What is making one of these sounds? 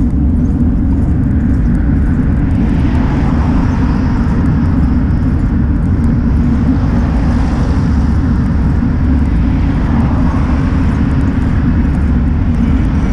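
Tyres roll on the road with a steady rumble.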